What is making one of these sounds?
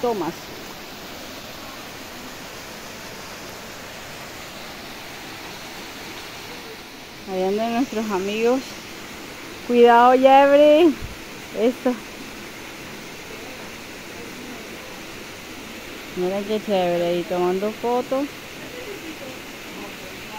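A small waterfall splashes steadily into a pool.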